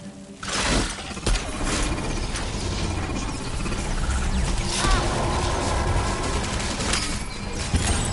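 Explosions boom and crackle in a game.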